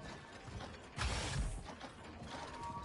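A heavy metal door slides open with a whoosh.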